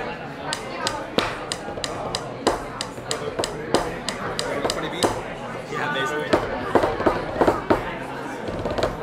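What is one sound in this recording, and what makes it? Drumsticks tap quickly on electronic drum pads, close by.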